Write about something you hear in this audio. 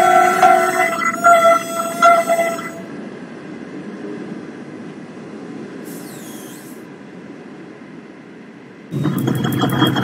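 Passenger coaches roll past on rails.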